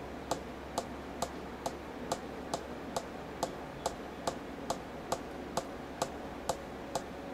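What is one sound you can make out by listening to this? Fingernails tap on a table in a slow, steady rhythm.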